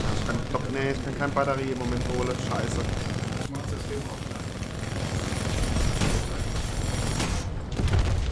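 Heavy machine guns fire in rapid bursts.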